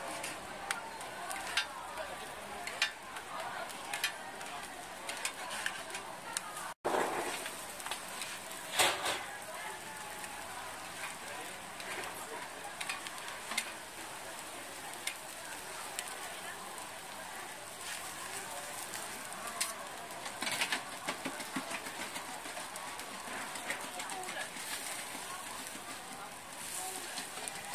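Cakes sizzle softly on a hot griddle.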